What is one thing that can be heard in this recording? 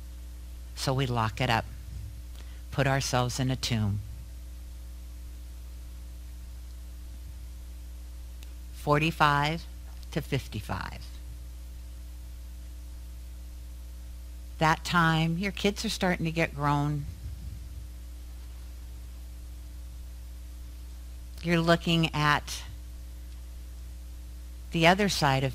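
A woman speaks calmly into a microphone with long pauses, in a room with a slight echo.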